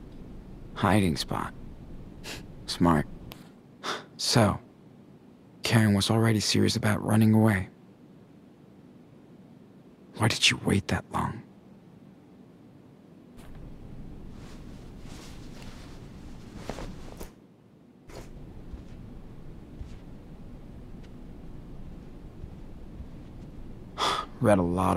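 A young man speaks quietly and calmly, close by.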